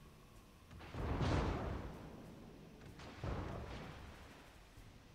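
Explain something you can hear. Heavy naval guns fire with deep, booming blasts that roll away.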